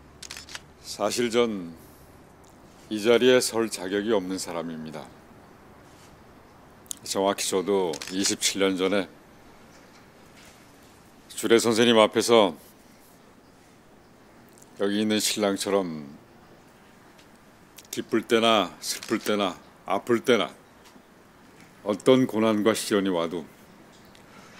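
A middle-aged man speaks calmly and warmly into a microphone, in short phrases with pauses.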